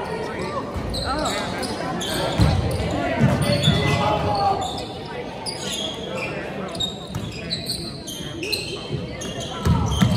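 Players and spectators call out in a large echoing gym.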